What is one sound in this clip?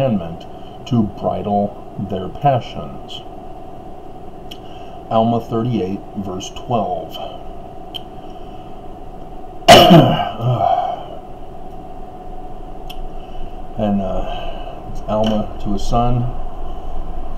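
A middle-aged man speaks close to a microphone, calmly and in bursts with pauses.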